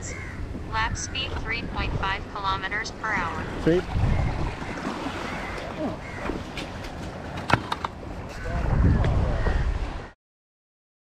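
Water splashes and laps against a kayak.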